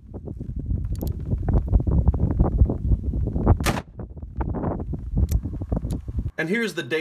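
A gun fires loud, sharp shots outdoors.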